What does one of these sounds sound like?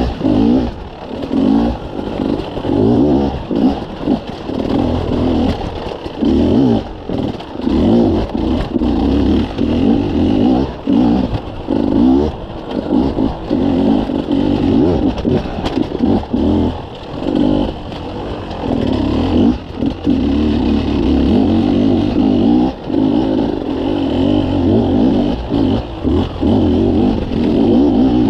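A dirt bike engine revs hard and rises and falls in pitch up a rocky trail.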